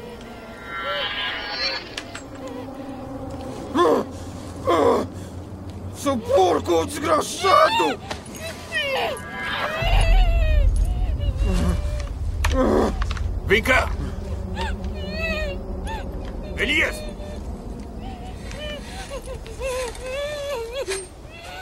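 A man speaks in a low, menacing voice close by.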